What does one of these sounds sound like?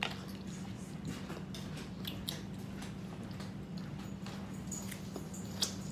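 A young girl chews and smacks her lips while eating.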